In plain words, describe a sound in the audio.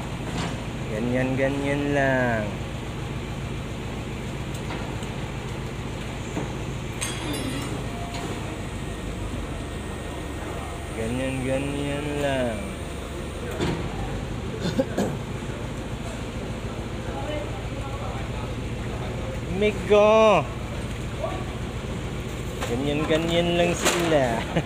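A man calls out loudly nearby, in short bursts.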